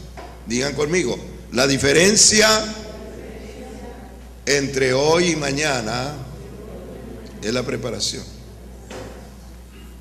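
A man preaches with animation through a microphone, his voice echoing in a large room.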